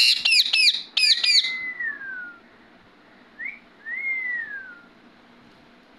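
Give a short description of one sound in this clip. A parrot whistles with gliding, falling notes.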